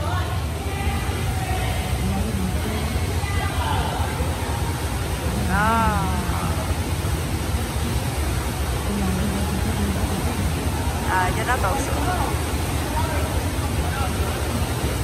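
Water splashes as a child swims.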